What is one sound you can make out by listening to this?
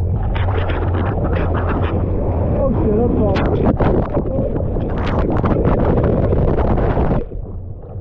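A wave crashes over a swimmer with a loud rush of water.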